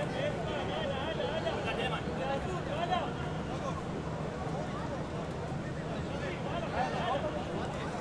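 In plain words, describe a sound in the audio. Men talk to one another nearby.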